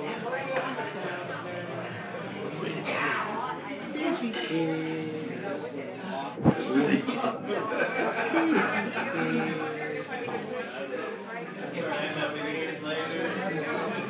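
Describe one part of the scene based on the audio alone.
A baby giggles and babbles happily close by.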